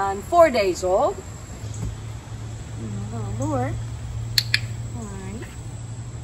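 An older woman speaks to a puppy in a high, cheerful sing-song voice.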